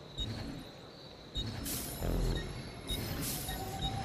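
A menu clicks softly.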